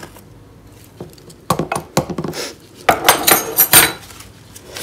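A metal spoon scrapes and clinks against a plastic cup.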